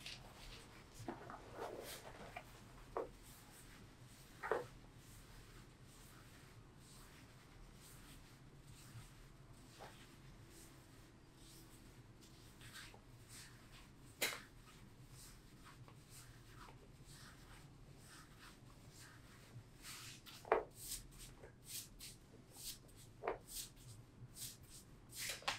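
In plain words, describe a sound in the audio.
Hands rub and pat against trouser fabric.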